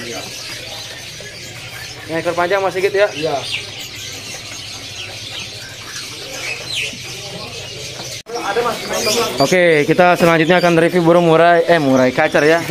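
A small bird chirps in short high notes.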